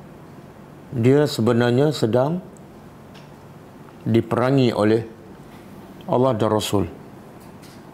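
A middle-aged man recites in a slow, melodic voice close to a microphone, in short phrases with pauses.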